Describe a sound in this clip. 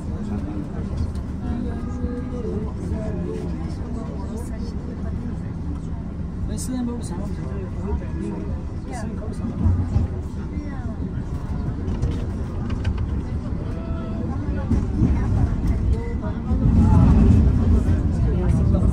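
A tram rumbles and rattles steadily along its rails.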